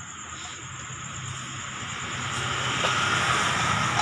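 A metal pot clanks onto a stove.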